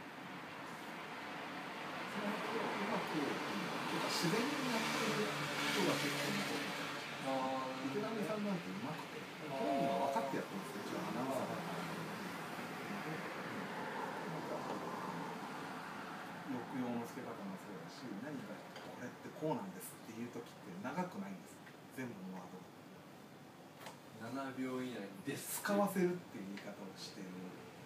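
A second man answers in a calm voice.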